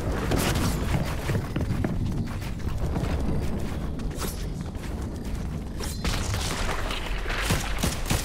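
Video game footsteps patter quickly as a character runs.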